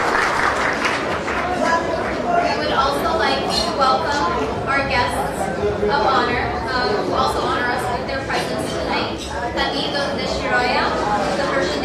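A young woman reads out calmly through a microphone.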